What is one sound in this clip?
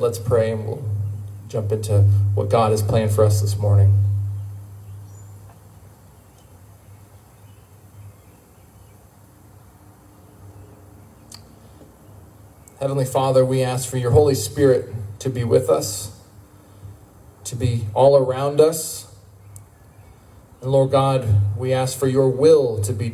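A man speaks into a microphone over a loudspeaker, in short phrases with pauses.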